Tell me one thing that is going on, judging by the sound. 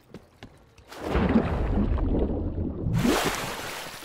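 Water splashes and rushes as a body plunges in.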